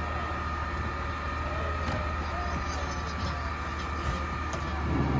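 A garbage truck's lift arm whines as it raises a bin.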